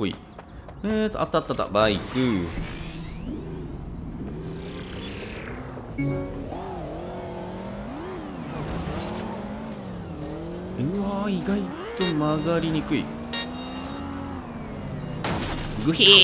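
A motorcycle engine revs and drones, rising and falling in pitch.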